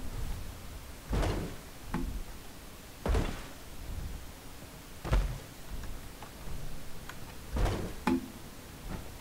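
Heavy armoured footsteps thud on metal and stone.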